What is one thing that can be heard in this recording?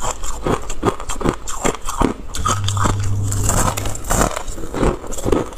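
A young woman crunches loudly on ice close to a microphone.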